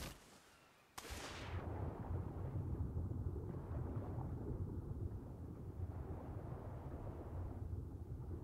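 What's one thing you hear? A muffled underwater rumble churns steadily.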